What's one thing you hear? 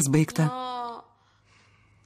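A young woman speaks softly and anxiously on a phone.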